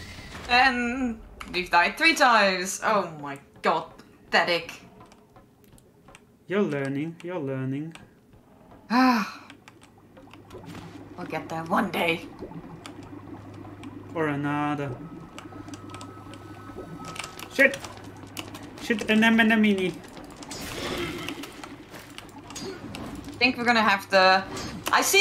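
A young woman talks and laughs with animation into a close microphone.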